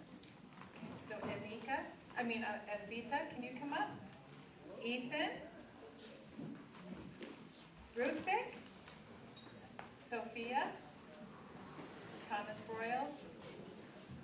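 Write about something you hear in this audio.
A woman speaks into a microphone over loudspeakers in a large echoing hall.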